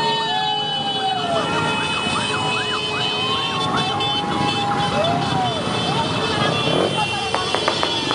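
Many motorcycle engines rumble and buzz as a large crowd rides past.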